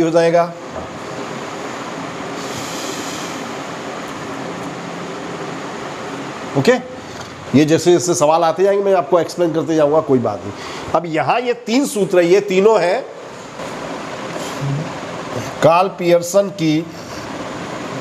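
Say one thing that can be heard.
A man lectures calmly, heard through a microphone.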